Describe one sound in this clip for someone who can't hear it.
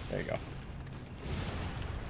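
A fire blast whooshes.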